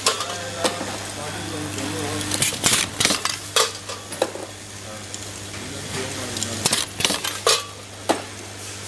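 Small metal parts clatter and jingle as a hand sorts through them.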